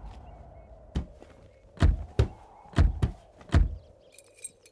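Heavy footsteps thud on the ground.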